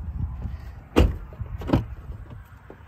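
A car door clicks and opens.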